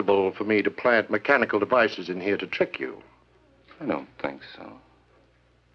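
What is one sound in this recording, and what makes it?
A man speaks firmly nearby.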